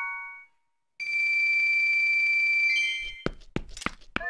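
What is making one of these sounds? A steady ringing electronic tone holds and fades.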